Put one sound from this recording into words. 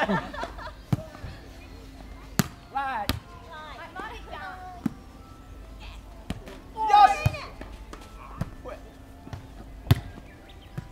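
A volleyball thumps off players' hands and arms.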